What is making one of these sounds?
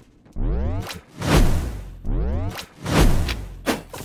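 A magic blast bursts with a sharp crackle.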